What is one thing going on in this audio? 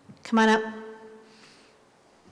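A woman speaks briefly through a microphone in a large echoing hall.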